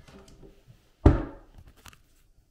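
A wooden locker door slams shut.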